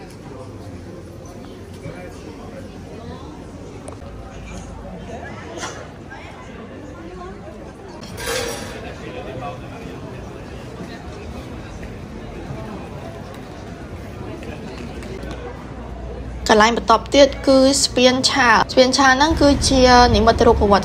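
A crowd of people chatters and walks along an outdoor street.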